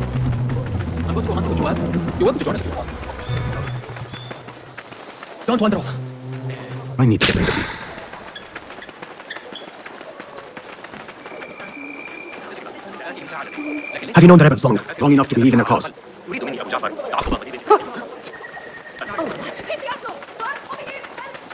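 Footsteps run on packed dirt.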